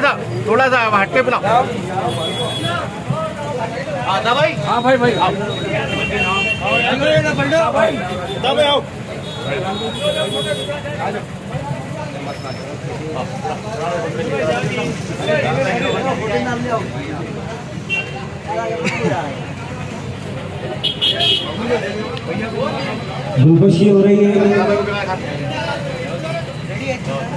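Several men talk with one another close by.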